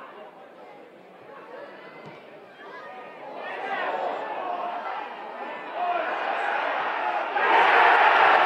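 A crowd murmurs and shouts outdoors.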